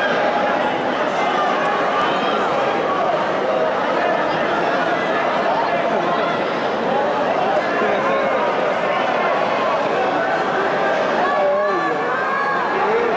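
A large crowd shouts and cheers throughout.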